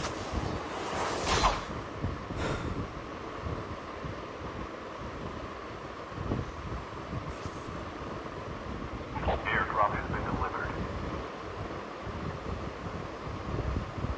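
Footsteps thud on a tiled roof.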